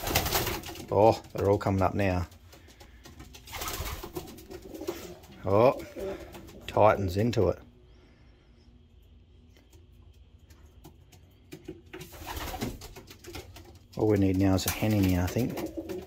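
Pigeons coo in low, rolling bursts close by.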